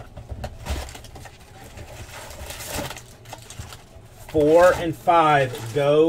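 A cardboard box flap is pulled and torn open.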